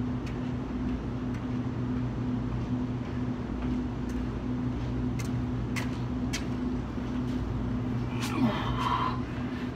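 Footsteps approach on concrete.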